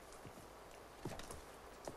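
Paper rustles as it is passed from hand to hand.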